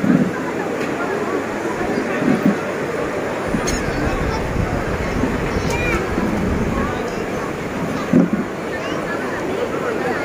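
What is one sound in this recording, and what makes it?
A large crowd of men, women and children chatter in a big echoing hall.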